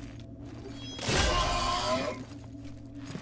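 A burst of energy explodes with a loud roar.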